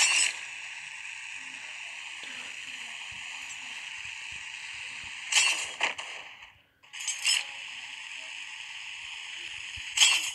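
A zipline pulley whirs steadily along a cable.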